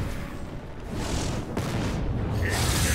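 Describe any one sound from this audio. A fiery spell bursts with a whooshing roar.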